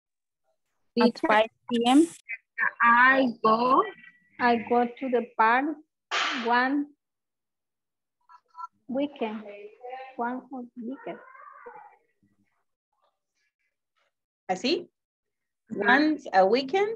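A woman speaks clearly over an online call.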